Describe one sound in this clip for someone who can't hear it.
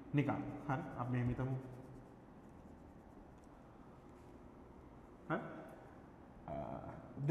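A man speaks in short bursts, explaining calmly up close.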